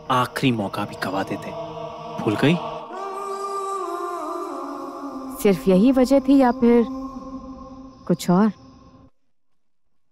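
A man speaks in a low, tense voice close by.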